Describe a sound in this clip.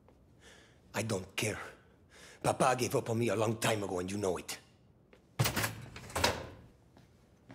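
A man speaks calmly and flatly.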